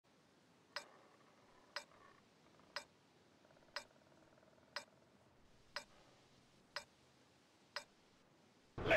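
A countdown timer ticks once every second.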